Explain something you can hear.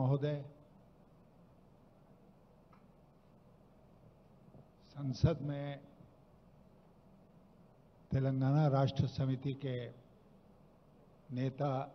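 An elderly man speaks slowly and calmly into a microphone, heard through loudspeakers.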